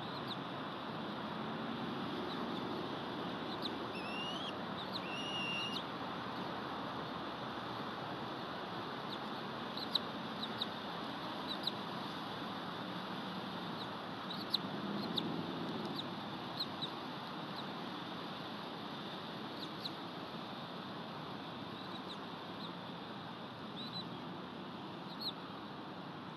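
Wind rushes steadily through pine branches outdoors.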